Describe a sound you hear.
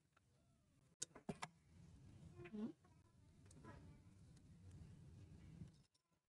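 Small metal tabs click against each other.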